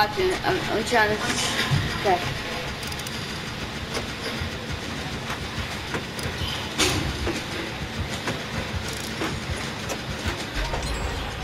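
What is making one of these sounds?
Metal parts rattle and clank as a machine is repaired.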